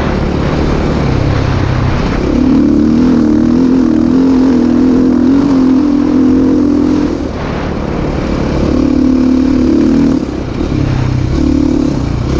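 Tyres crunch and rumble over a dirt track.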